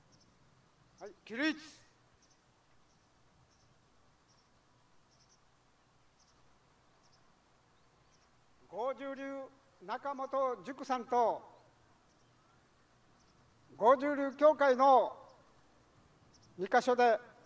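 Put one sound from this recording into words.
An elderly man speaks calmly into a microphone, heard through a loudspeaker outdoors.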